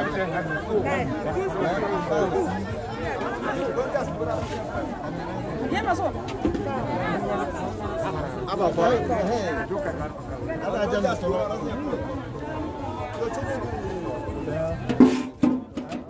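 A crowd of men and women talks and chatters all around, outdoors.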